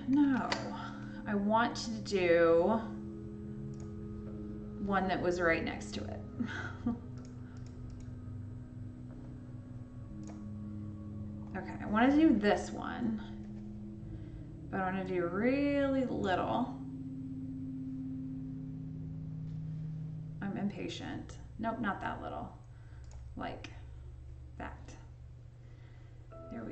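A young woman talks calmly and with animation into a close microphone.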